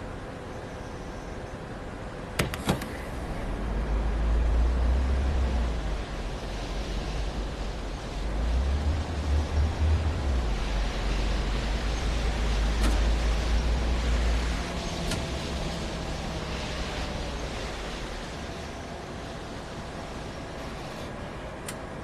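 A bus engine rumbles low, swelling as the bus accelerates and then settling.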